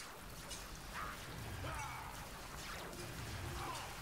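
Arrows whoosh through the air.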